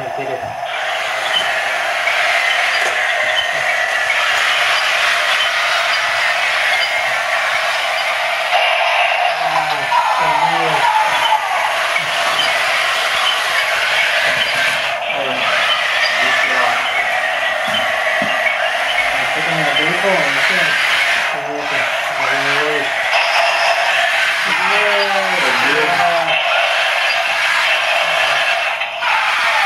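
Small toy tank motors whir steadily as the tanks drive across the floor.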